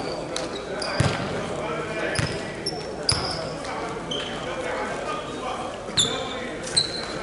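A volleyball is struck with sharp slaps that echo through a large hall.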